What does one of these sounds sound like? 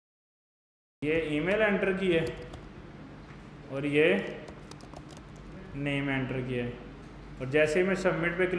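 A young man speaks calmly into a close microphone, explaining.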